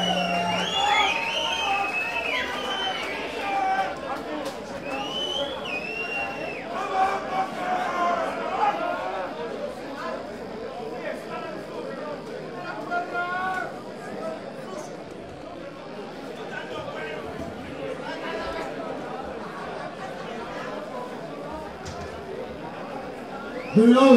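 An electric guitar plays loudly through an amplifier.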